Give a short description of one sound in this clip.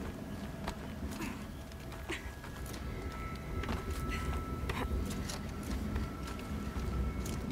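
Footsteps scrape and knock on rock.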